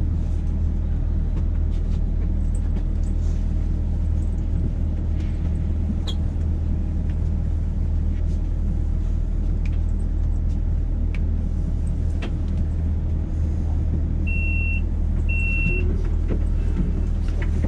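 A tram's motor hums steadily at a stop.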